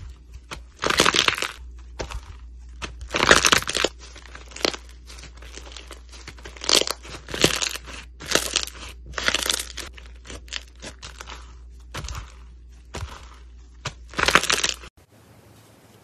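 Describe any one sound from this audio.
Fluffy slime crunches and crackles as hands squeeze and stretch it.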